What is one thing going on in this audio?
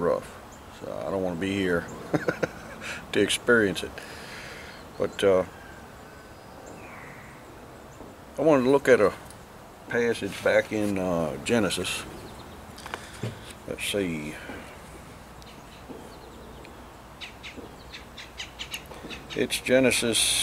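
A middle-aged man talks calmly close by, outdoors.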